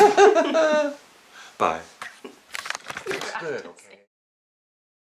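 A woman laughs close to a microphone.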